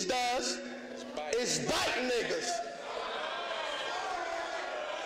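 A crowd cheers and shouts in a large echoing room.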